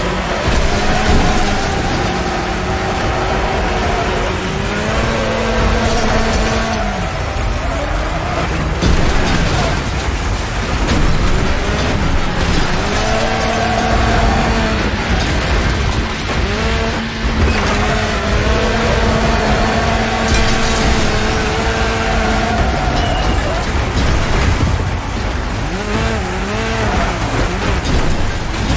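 A small engine revs and whines, rising and falling in pitch.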